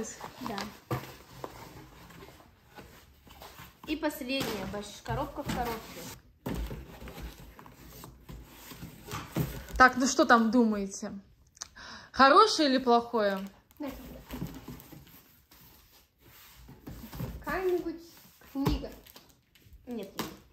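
Cardboard boxes rustle and thump as they are handled.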